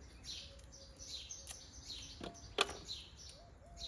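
A knife snips the ends off cucumbers.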